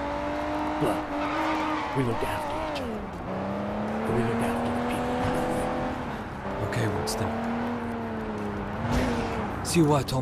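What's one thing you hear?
A car engine hums and revs, rising and falling in pitch as the car speeds along.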